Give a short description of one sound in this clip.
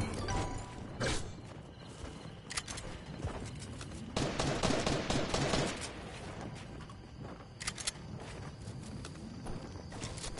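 Building pieces snap into place with quick clicks and thumps.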